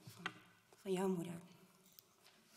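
A woman speaks briefly through a microphone in a room.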